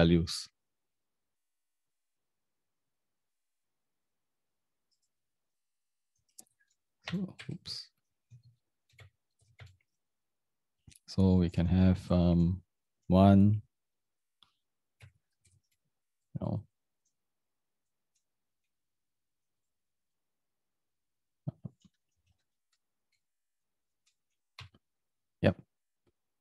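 A young man speaks calmly and haltingly into a close microphone.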